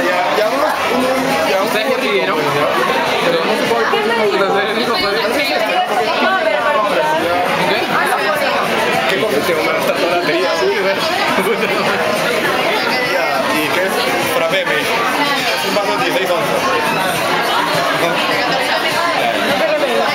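A crowd chatters throughout, in a busy, noisy room.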